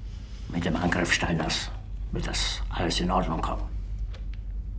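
An elderly man speaks tensely and closely.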